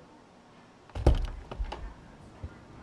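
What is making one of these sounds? A door opens with a thud.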